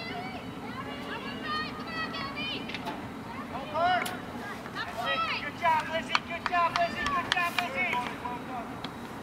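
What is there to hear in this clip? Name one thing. Young girls shout and call out across an open playing field.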